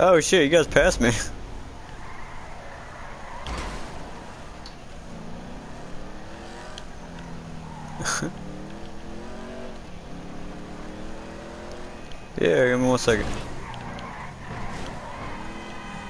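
A car engine revs and hums.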